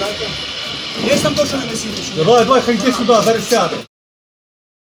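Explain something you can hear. A man speaks loudly and urgently nearby.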